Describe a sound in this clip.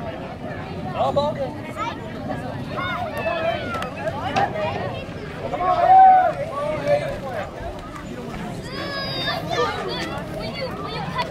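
Children cheer and whoop excitedly.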